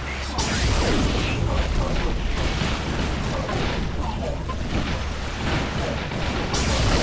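Gunfire and laser blasts crackle in a battle.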